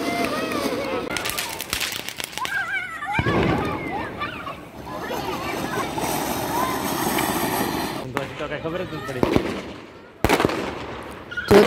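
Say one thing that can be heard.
A firework fountain hisses and crackles as it sprays sparks.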